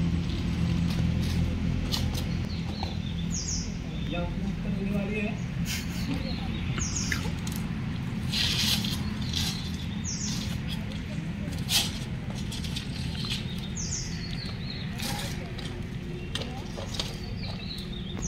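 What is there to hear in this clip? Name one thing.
A man's shoes scrape against a stone wall as he climbs a rope.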